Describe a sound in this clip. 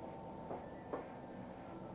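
A brush sweeps softly across skin.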